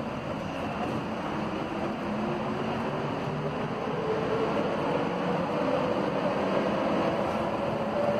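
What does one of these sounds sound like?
A train's motor whines, rising in pitch as it speeds up.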